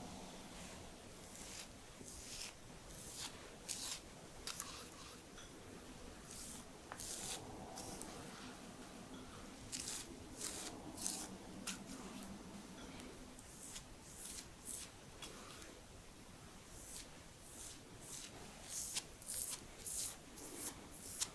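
A brush spreads thick cream on skin with soft, wet brushing sounds.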